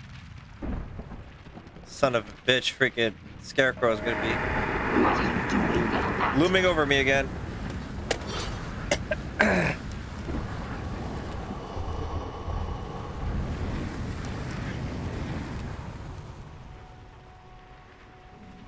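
Flames roar in a burst of fire.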